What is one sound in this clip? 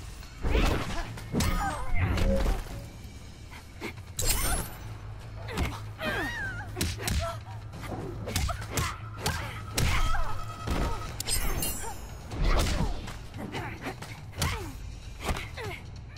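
Punches and kicks land with heavy thuds and slaps.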